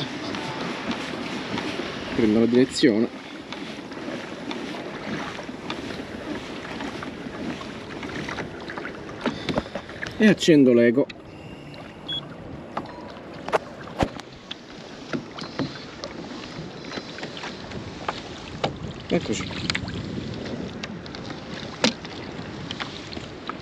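Water laps and splashes gently against a small boat's hull.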